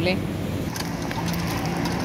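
Water trickles from a hand pump.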